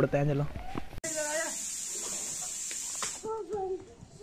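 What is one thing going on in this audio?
A firework fuse hisses and sputters.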